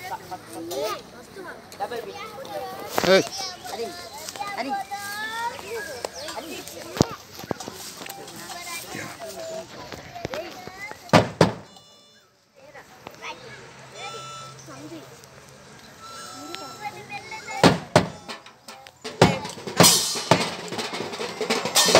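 A drum is beaten.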